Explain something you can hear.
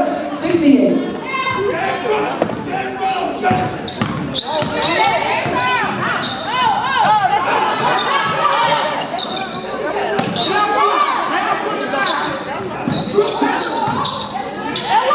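A crowd of spectators chatters and cheers loudly in an echoing gym.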